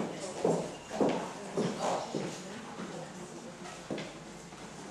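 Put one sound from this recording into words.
Footsteps knock on the floor.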